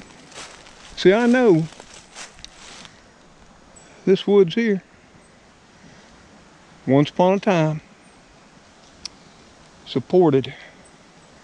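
An elderly man speaks calmly in short phrases close by, outdoors.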